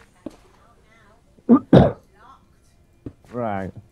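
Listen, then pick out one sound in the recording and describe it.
A block breaks with a short crunch.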